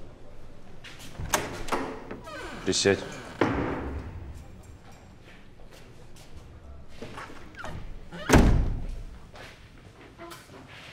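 Footsteps walk across a floor.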